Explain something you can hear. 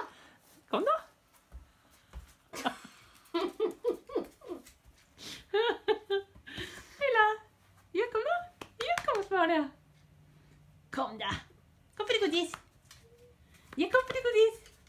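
A woman talks in a high, playful voice close by.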